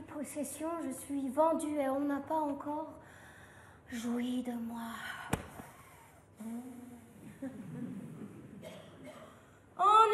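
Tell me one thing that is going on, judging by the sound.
A young woman speaks expressively, her voice carrying in a large room.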